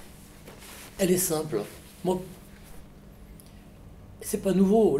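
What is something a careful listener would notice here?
An elderly man speaks calmly and close by.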